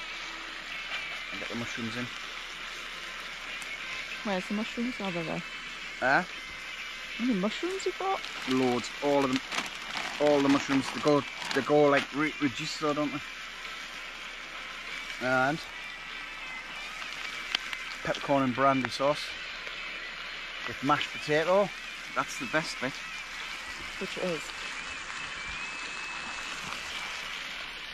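Meat sizzles in a frying pan.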